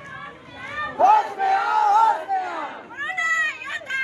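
A man shouts slogans close by.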